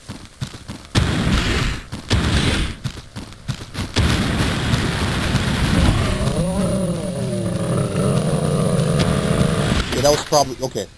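A weapon blasts out a roaring stream of fire.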